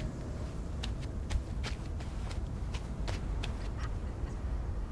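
Quick light footsteps patter on stone.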